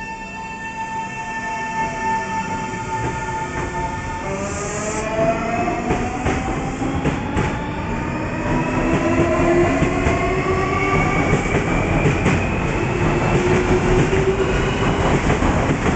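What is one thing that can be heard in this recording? Train wheels rumble and clatter on the rails, growing louder.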